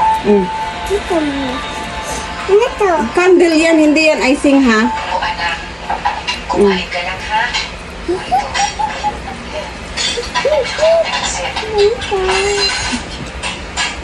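A little girl chatters and squeals excitedly close by.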